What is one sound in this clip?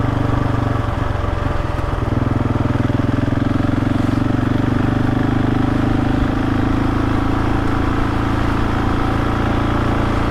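Tyres crunch and rumble over a rough dirt track.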